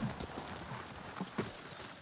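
Horse hooves clop slowly on a dirt path.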